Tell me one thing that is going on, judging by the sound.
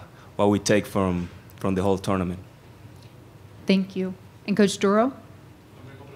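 A young man speaks calmly into a microphone in short phrases.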